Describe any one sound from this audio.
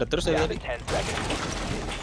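A wooden barricade splinters and smashes apart.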